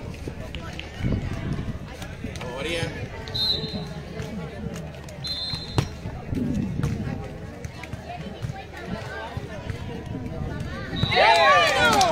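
A volleyball is struck with dull slaps.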